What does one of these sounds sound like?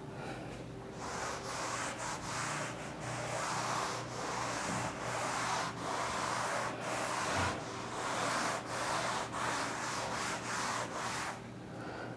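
A duster rubs across a board in quick strokes.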